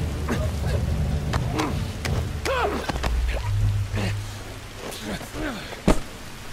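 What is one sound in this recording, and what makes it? A man grunts and groans as he struggles.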